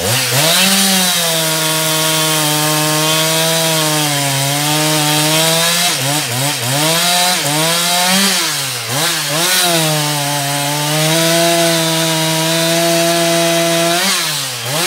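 A chainsaw engine roars loudly, revving up and down as it cuts through wood.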